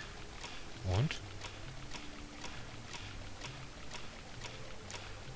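Footsteps splash through shallow water at a steady pace.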